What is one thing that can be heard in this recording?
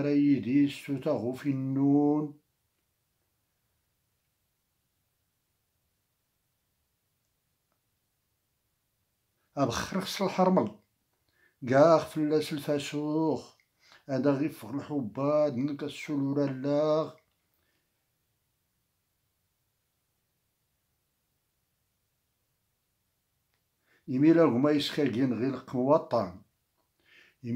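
An elderly man speaks calmly and close up, in bursts with long pauses.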